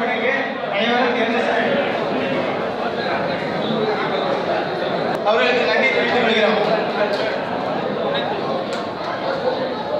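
A crowd of men chatters in the background.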